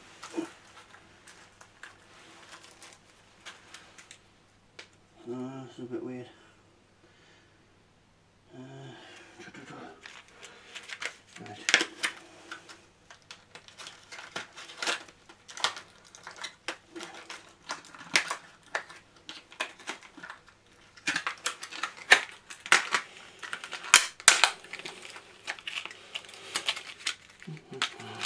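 A spinning record crackles and pops with sharp clicks.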